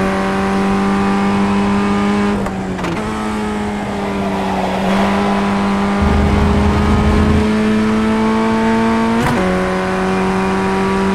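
A racing car engine hums steadily at high revs.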